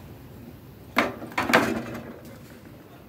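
A bundle of wire drops onto a metal coil with a short clatter.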